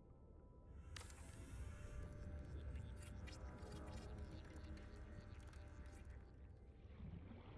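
An electric building tool hums and crackles with sparkling sounds.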